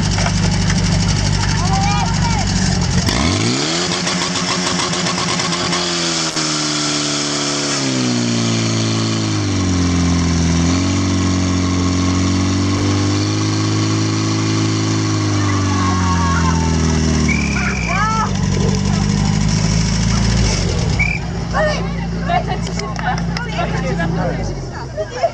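A pump engine roars loudly close by, its pitch rising and falling as it revs.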